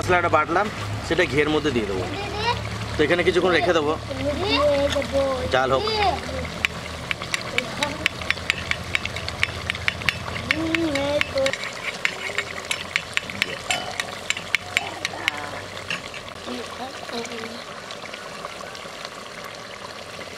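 Thick stew bubbles and simmers in a pot.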